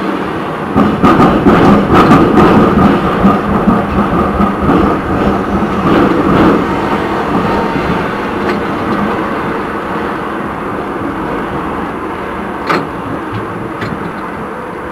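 Tram wheels click over rail joints.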